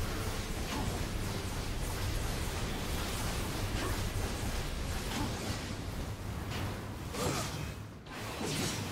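Blades clash and slash in quick strikes.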